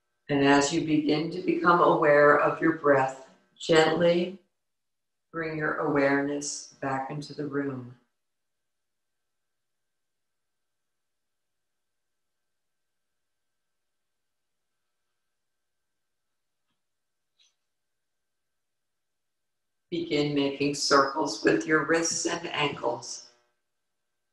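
A woman speaks calmly and closely into a microphone, reading aloud.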